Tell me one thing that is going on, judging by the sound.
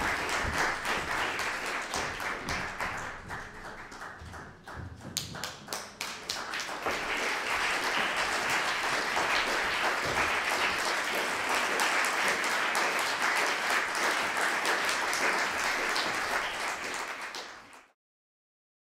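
An audience applauds loudly in an echoing hall, then the applause suddenly cuts off.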